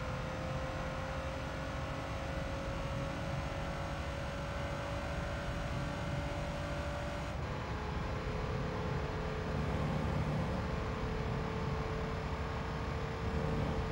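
A car engine hums steadily and slowly rises in pitch.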